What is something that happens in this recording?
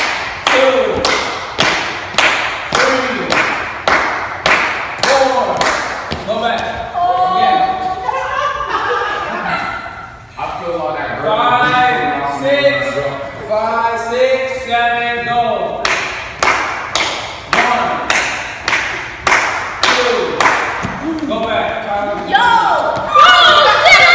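Feet stamp and shuffle on a hard floor as people dance.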